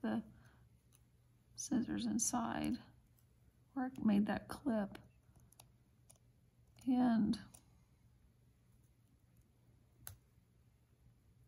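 Small scissors snip through thread close by.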